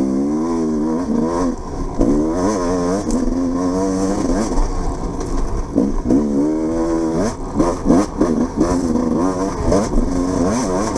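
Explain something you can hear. A motorbike engine revs up and down close by.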